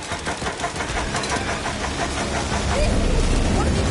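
A mounted machine gun fires heavy, rapid rounds.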